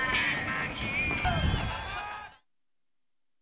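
A large stadium crowd cheers and chants.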